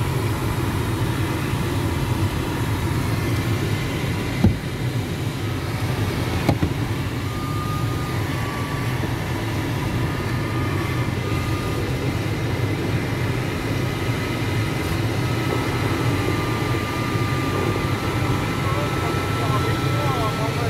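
Air rushes steadily over a glider's canopy in flight.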